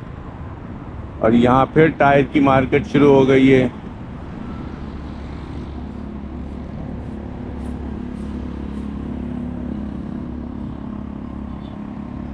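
Light road traffic rumbles along an open street.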